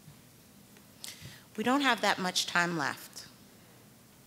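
A woman speaks briefly and calmly into a microphone.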